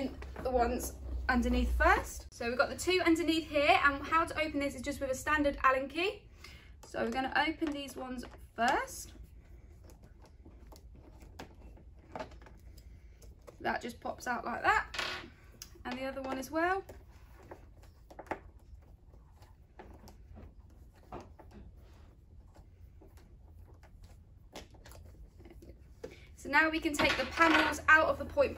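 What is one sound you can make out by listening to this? A young woman speaks calmly and clearly nearby, pausing now and then.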